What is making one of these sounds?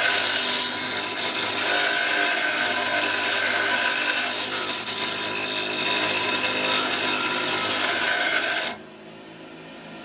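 A bench grinder hums steadily as it spins.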